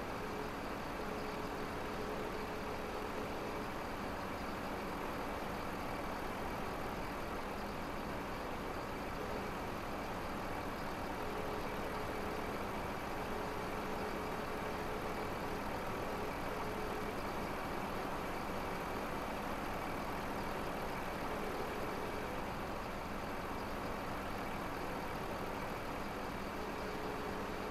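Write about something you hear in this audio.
A hydraulic crane whines steadily as it lifts and swings logs.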